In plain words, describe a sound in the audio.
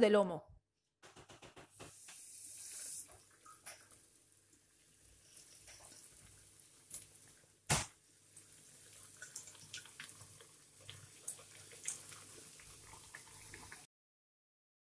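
Hot oil sizzles and crackles loudly as cutlets are laid in a pan.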